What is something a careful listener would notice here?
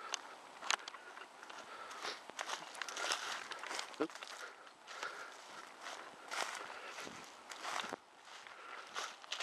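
Footsteps crunch and rustle through dry leaves and grass.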